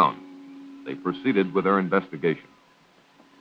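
A man speaks in a drawl, close by.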